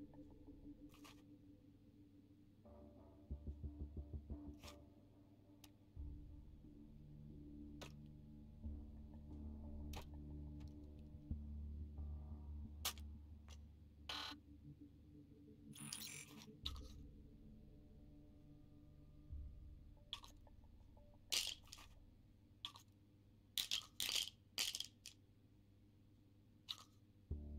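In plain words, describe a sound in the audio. Game items click and clatter as they are picked up and loaded.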